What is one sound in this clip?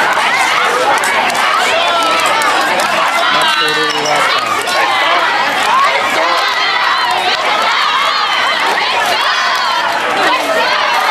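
A dense crowd of people chatters and shouts loudly outdoors.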